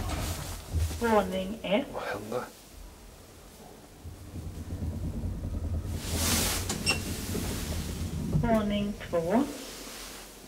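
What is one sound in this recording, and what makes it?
An elevator chime sounds with a falling tone.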